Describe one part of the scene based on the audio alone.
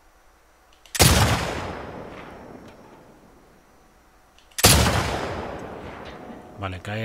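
A rifle fires loudly twice, each shot echoing away.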